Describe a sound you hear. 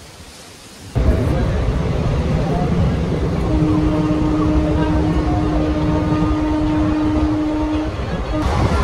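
A train rumbles and rattles steadily along its tracks.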